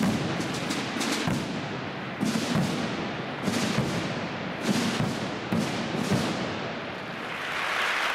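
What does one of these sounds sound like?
Large drums boom and rumble in a big echoing hall.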